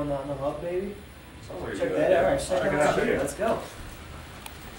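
Young men talk loudly and excitedly nearby.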